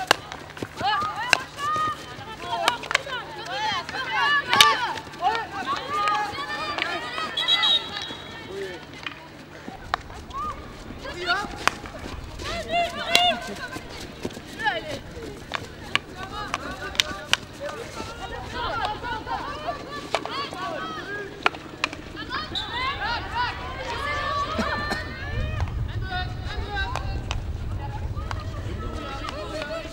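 Young women shout and call out to each other across an open field.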